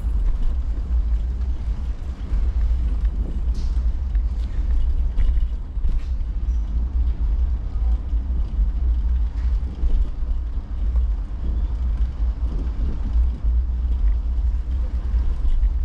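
Wind rumbles steadily and loudly outdoors.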